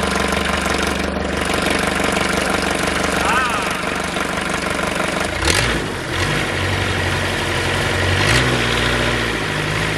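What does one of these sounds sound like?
A diesel engine runs with a steady, chugging rumble.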